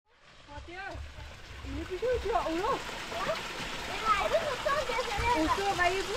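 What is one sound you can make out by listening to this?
A young girl talks in a high voice nearby.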